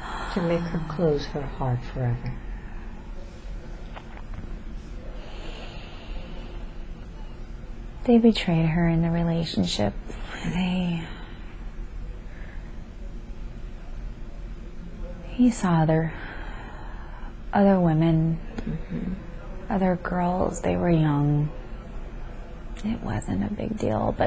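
A young woman speaks slowly and drowsily close by.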